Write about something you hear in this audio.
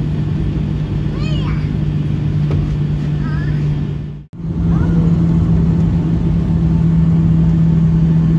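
A jet engine drones steadily from inside an aircraft cabin.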